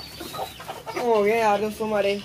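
A hen clucks.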